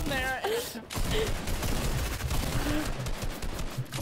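Gunshots crack from a video game.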